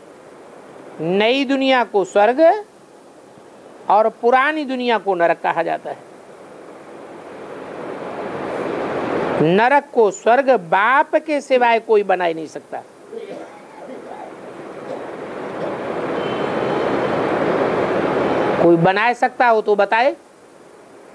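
An elderly man speaks calmly and clearly into a nearby microphone, pausing between phrases.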